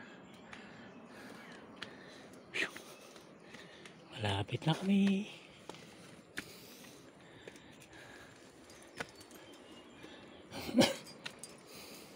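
Footsteps crunch on loose dirt and stones.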